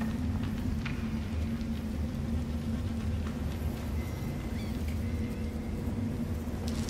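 Footsteps scuff softly on stone.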